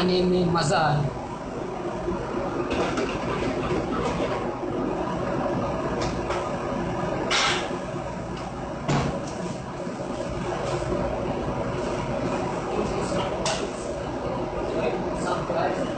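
An extractor fan hums steadily.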